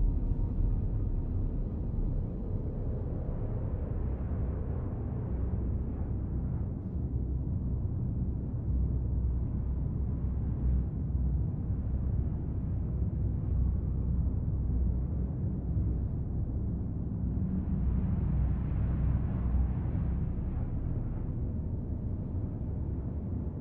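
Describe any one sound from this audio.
Spacecraft engines roar steadily, with a deep rumble.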